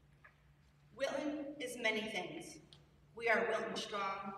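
A woman speaks calmly into a microphone over loudspeakers in a large hall.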